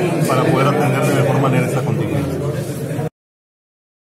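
A middle-aged man speaks close to microphones.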